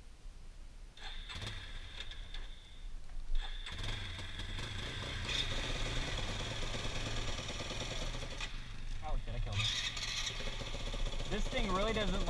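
A dirt bike engine starts, revs and runs close by.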